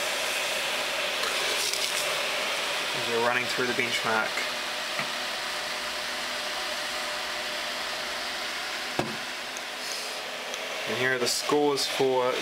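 Computer fans whir steadily close by.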